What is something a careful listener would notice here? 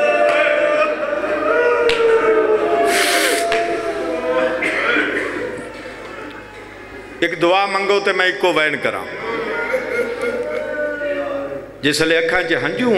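A young man recites with passion and strong emotion through a microphone and loudspeaker.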